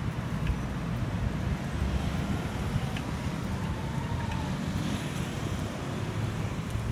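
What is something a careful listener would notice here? Traffic hums steadily nearby outdoors.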